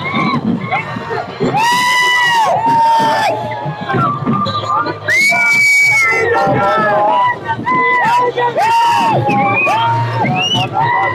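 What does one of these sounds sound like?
A large crowd of men shouts and chants slogans loudly outdoors.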